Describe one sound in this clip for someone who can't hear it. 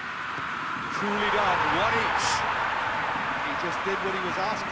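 A large crowd cheers loudly after a goal.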